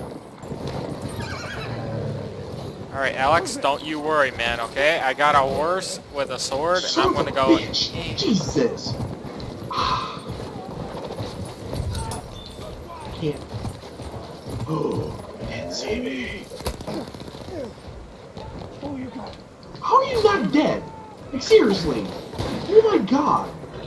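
A horse gallops, its hooves pounding on the ground.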